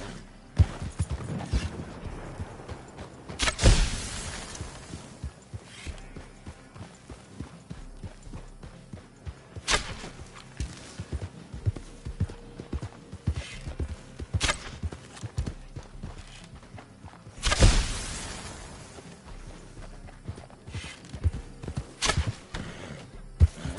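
Hooves thud steadily on dirt as a horse gallops.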